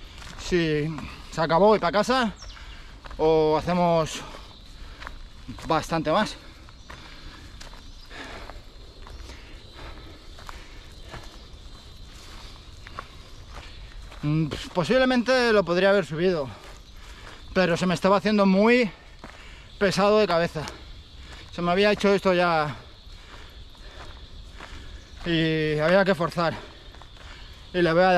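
A man speaks close up in short bursts, a little out of breath.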